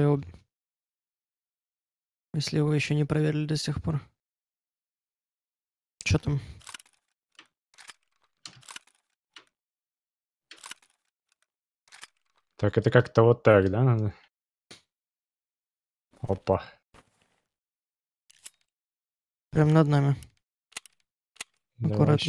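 A man speaks calmly and casually into a close microphone, in short bursts.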